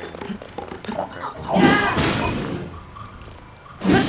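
A robotic creature clanks and whirs close by.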